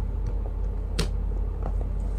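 A phone clacks lightly as it is picked up from a hard surface.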